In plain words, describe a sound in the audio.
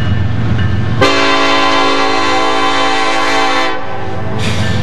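A train's multi-chime air horn blows as the train approaches.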